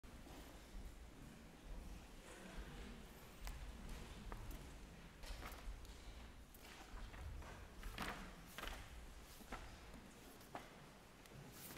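A young woman recites clearly in a large, echoing hall.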